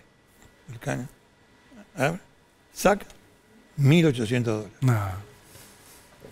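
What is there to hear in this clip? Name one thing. An older man speaks slowly and haltingly into a microphone, with pauses.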